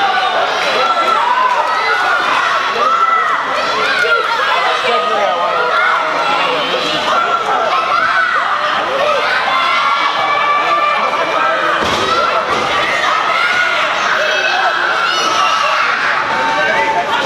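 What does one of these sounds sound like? A crowd of people cheers and shouts in an echoing indoor hall.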